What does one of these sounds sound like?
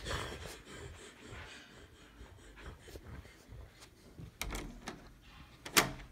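A door handle clicks and a door swings.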